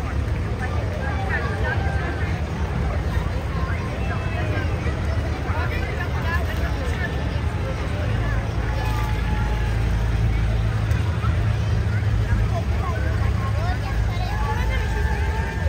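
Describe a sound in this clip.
A truck engine rumbles as it rolls slowly past.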